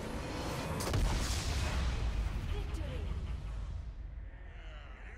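A deep explosion booms and rumbles away.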